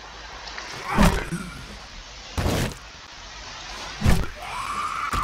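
A spiked club strikes a body with heavy thuds.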